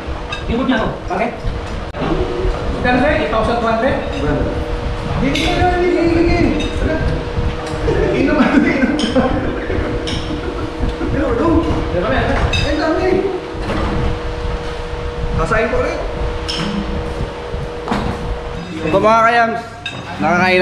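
Several young men and women talk and chat casually nearby.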